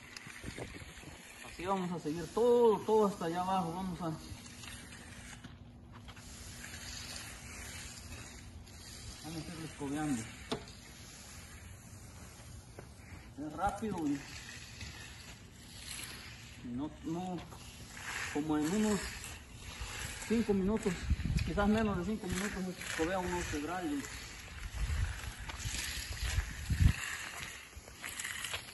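A broom brushes softly across wet concrete.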